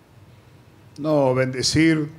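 An older man speaks into a microphone.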